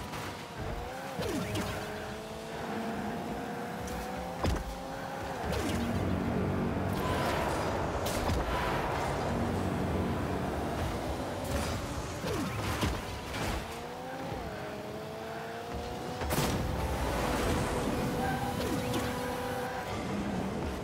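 A car engine hums and whines, rising in pitch as it speeds up.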